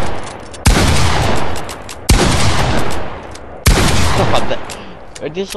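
A game character fires a shotgun in loud bursts.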